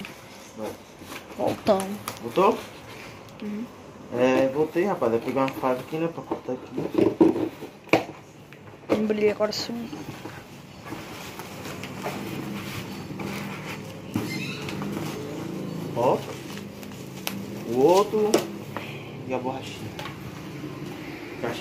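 Cardboard rustles and scrapes as hands open a box.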